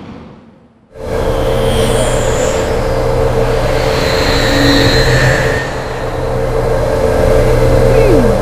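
A hovering car's engine hums steadily.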